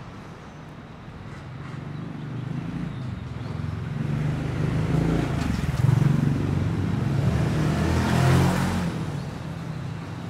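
A motorbike engine grows louder as it approaches and roars past close by.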